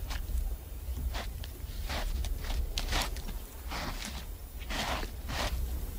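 An animal scrapes and digs in dry, loose earth.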